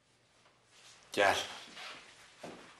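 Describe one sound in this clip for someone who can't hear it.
A middle-aged man speaks curtly in a low voice.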